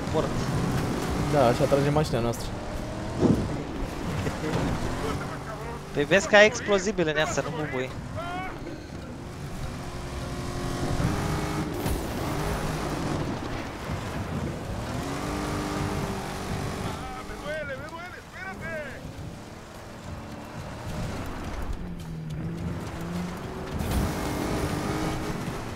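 Tyres crunch over rough gravel.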